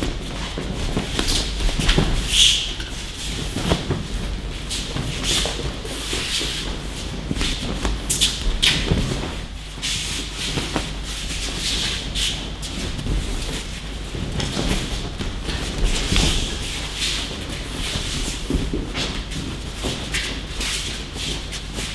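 Bodies thud onto padded mats again and again in a large echoing hall.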